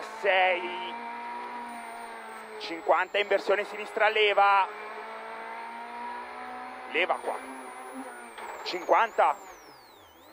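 A man reads out pace notes quickly over an intercom.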